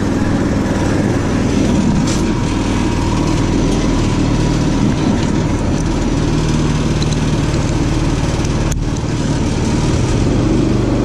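A small engine idles with a steady low rumble.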